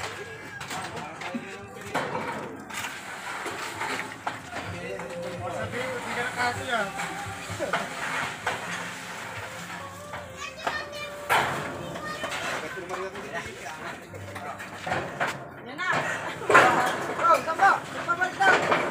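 Children shout and call out to each other nearby, outdoors.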